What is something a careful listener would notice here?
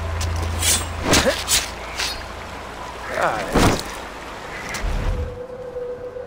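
A knife cuts wetly into an animal carcass.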